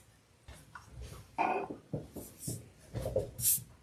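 A small plastic case clicks down onto a table.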